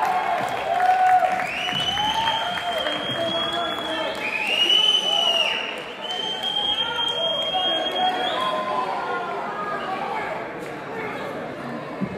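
A man sings through loudspeakers in a large echoing hall.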